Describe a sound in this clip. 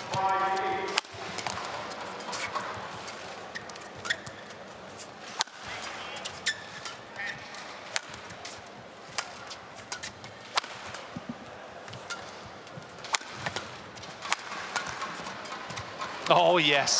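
Rackets smack a shuttlecock back and forth in a long rally.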